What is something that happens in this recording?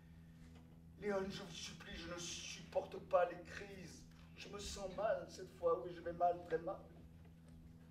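A man speaks with emotion.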